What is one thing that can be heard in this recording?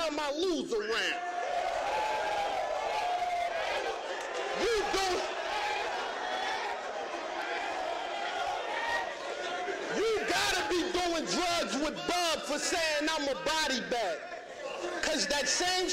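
A young man raps loudly and aggressively, close by.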